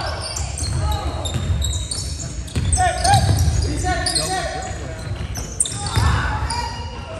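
Sneakers squeak sharply on a wooden floor in a large echoing gym.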